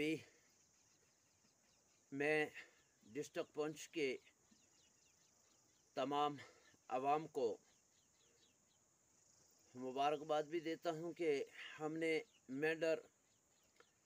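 An elderly man speaks with animation close to a microphone, in short bursts with pauses.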